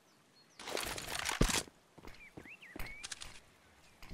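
A sniper rifle scope clicks as it zooms in.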